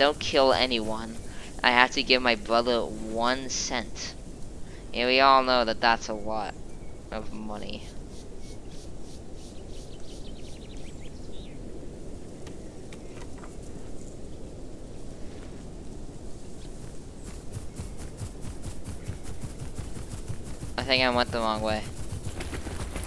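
A lizard-like creature gives short, warbling calls.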